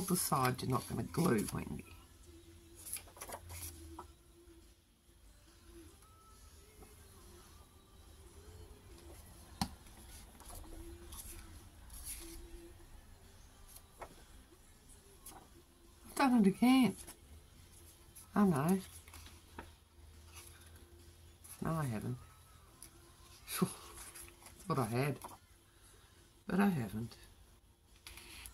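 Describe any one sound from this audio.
Hands handle a stiff paper card.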